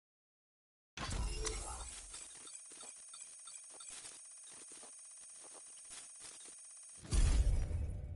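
A game's score counter ticks rapidly upward.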